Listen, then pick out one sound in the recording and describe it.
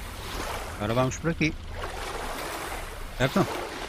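Water splashes as a figure swims.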